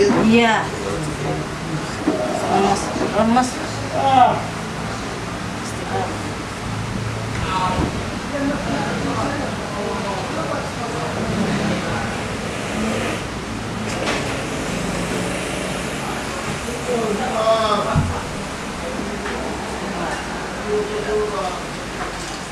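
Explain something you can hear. Hands rub and squeeze oiled skin softly.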